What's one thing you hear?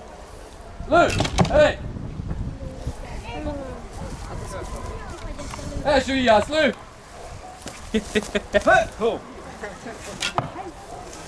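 Men shout and talk loudly with animation nearby outdoors.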